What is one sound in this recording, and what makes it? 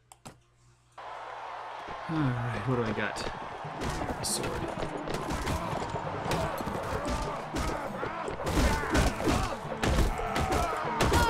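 Horses' hooves thud on the ground.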